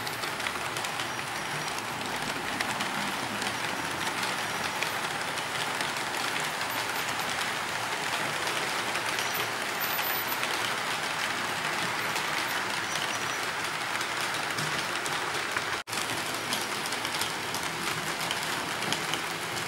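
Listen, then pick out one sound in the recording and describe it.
A small model train rattles and hums along its track.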